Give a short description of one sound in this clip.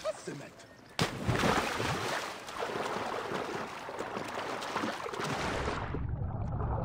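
Water churns and sloshes as a swimmer strokes along.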